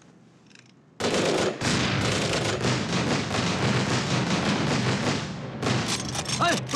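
Many explosions blast in quick succession.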